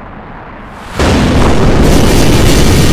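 A massive explosion roars and rumbles.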